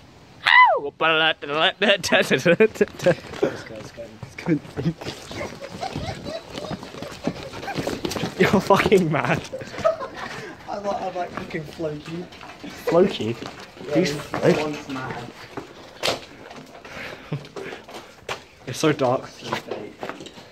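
A young man talks excitedly close by.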